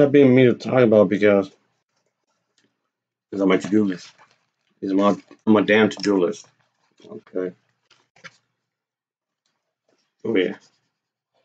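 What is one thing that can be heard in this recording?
A young man talks calmly close to the microphone, in short bursts with pauses.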